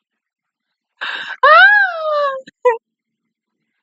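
A young woman speaks with animation, close to a headset microphone.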